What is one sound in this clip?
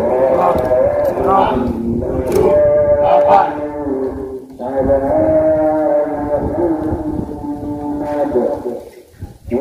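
A group of men sing together in unison.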